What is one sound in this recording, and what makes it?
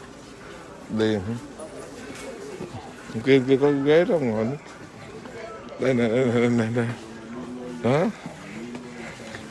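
An elderly man speaks close by, in short phrases.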